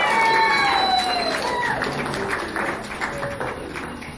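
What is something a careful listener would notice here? Guests clap and applaud in a large room.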